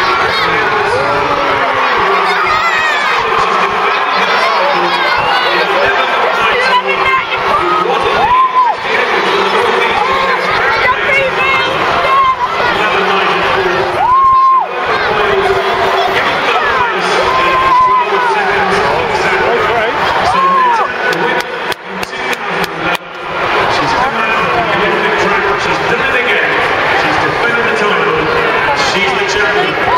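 A large crowd chatters and murmurs in an open stadium.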